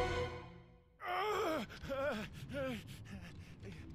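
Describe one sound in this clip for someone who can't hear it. A young man groans in pain.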